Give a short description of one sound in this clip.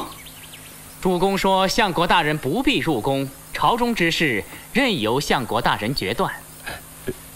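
A man speaks calmly and formally, close by.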